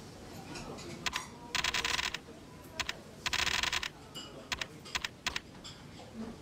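Short electronic clicks tick in quick succession.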